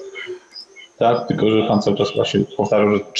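An older man speaks into a microphone in a room.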